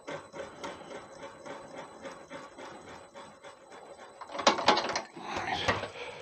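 A drill bit grinds and scrapes into spinning wood, louder toward the end.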